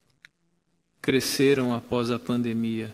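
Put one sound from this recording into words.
A man speaks calmly and firmly into a microphone.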